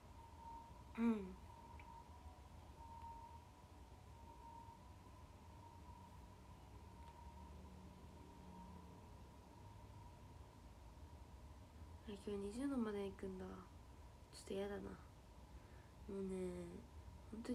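A young woman speaks softly, close by, in short bursts.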